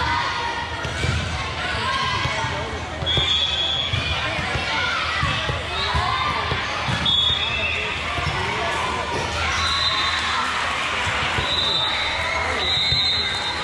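A volleyball thuds as it is served and hit.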